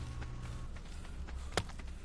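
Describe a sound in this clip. Leaves rustle as a bush is stripped by hand.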